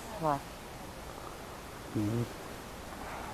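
A woman speaks close by in a calm, conversational voice.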